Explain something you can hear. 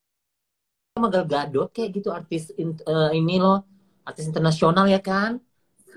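A woman speaks with animation through a phone microphone.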